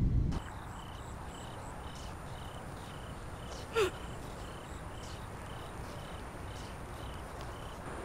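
A young woman sobs quietly nearby.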